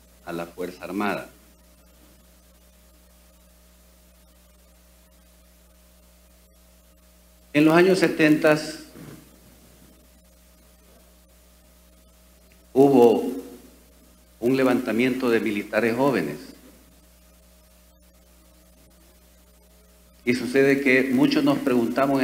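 An elderly man speaks calmly into a microphone, in bursts with long pauses.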